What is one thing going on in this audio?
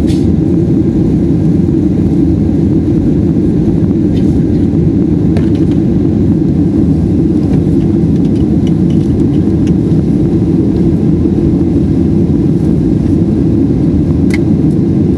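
Jet engines roar with a steady, deep rumble.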